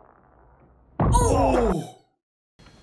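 A man shouts loudly.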